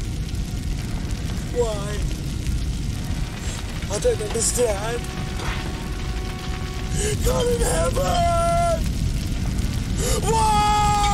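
A fire roars and crackles.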